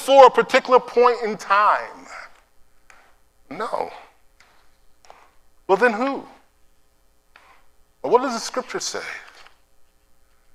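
An elderly man speaks with animation into a microphone, pausing between phrases.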